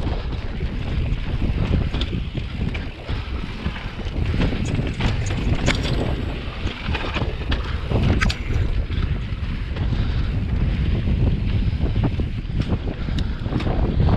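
Bicycle tyres crunch and roll over dirt and rock.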